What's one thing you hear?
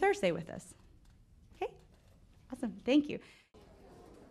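A woman speaks cheerfully into a microphone.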